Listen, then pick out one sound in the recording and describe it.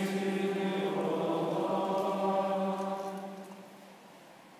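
A man chants in a steady voice through a microphone.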